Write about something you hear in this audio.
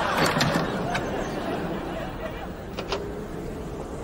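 A car door creaks open.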